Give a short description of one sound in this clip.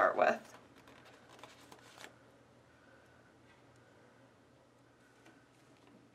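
A sheet of stiff paper rustles softly.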